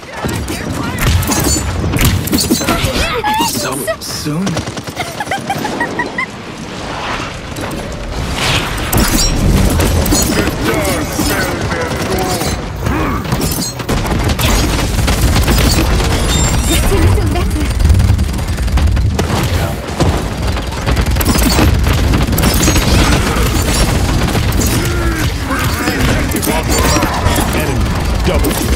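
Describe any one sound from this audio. Gunfire and energy blasts crackle and boom in a fast game fight.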